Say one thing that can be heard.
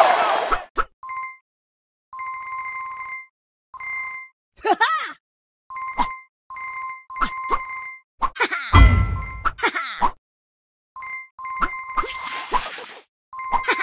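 Bright chimes ring in quick bursts as coins are collected.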